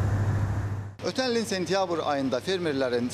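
A young man talks calmly and clearly, close up.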